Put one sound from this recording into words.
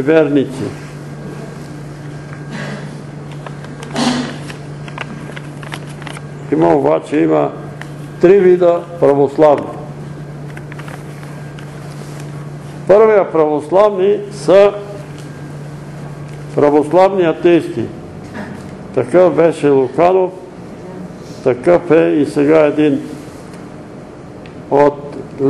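An elderly man reads aloud slowly, with long pauses.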